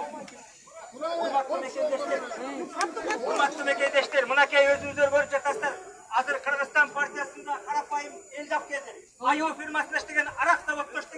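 A young man shouts through a megaphone outdoors.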